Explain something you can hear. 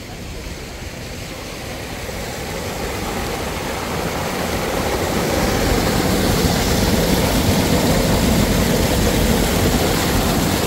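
A waterfall splashes loudly, growing louder as it comes closer.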